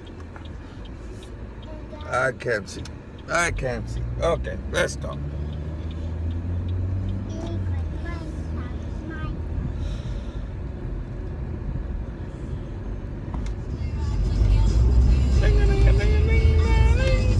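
A car engine hums low and steady inside the cabin.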